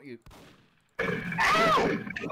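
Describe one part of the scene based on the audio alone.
A gun fires a shot.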